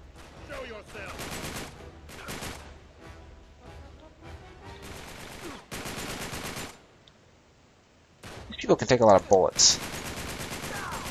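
A rifle fires in rapid bursts, echoing in a tunnel.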